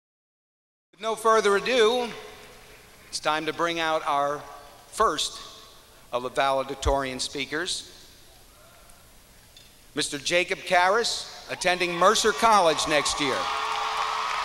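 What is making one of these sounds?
A man speaks slowly into a microphone over loudspeakers in a large echoing hall.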